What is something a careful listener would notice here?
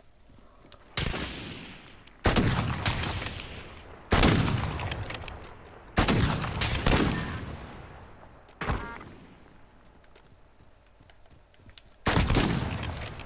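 A rifle fires loud single shots, each followed by a long fading echo.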